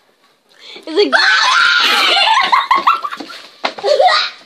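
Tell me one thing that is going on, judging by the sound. Teenage girls laugh and shriek loudly close by.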